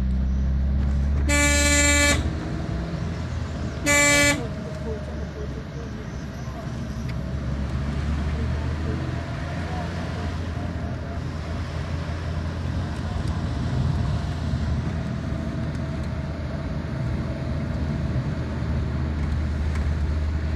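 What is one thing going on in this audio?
A car engine hums steadily while driving on a winding road.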